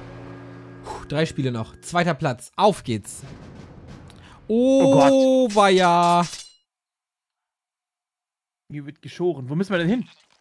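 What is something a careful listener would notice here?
A man talks with animation into a microphone.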